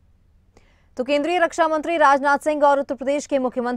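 A young woman reads out news clearly and steadily, close to a microphone.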